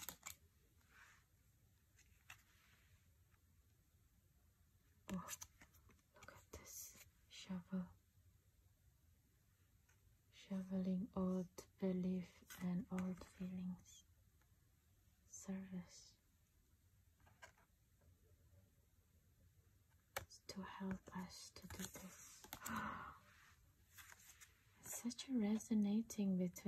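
Stiff cards rustle and tap as hands handle them.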